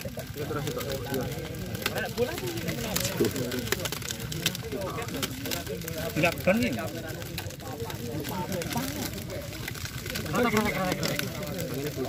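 Cardboard tubes rattle and clatter as they are handled.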